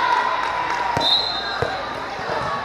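A volleyball is struck with a thump.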